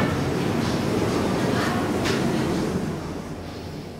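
Elevator doors slide shut.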